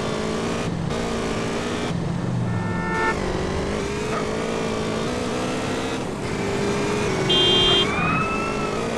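A motorbike engine hums steadily as it rides along.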